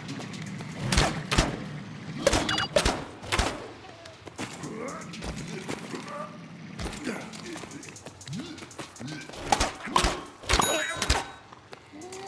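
A gun fires in rapid sharp bursts.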